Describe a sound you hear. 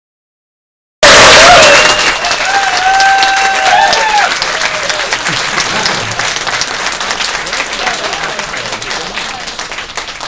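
A crowd claps and applauds loudly.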